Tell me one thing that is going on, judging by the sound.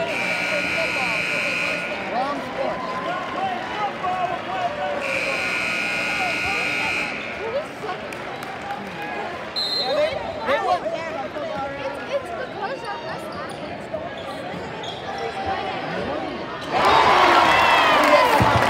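A crowd of spectators murmurs and chatters in an echoing gym.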